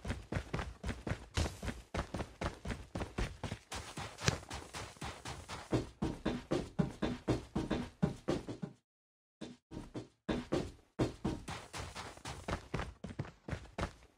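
Footsteps crunch quickly and steadily on snow.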